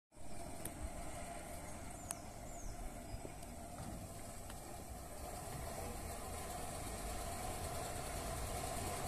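Tyres rumble over wooden planks.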